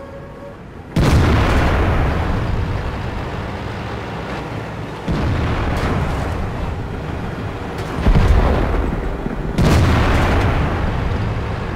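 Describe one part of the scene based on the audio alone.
A tank cannon fires with loud booms that echo and fade.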